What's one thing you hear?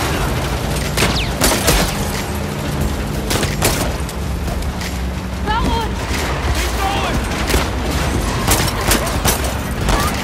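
Gunshots crack against a car's windshield.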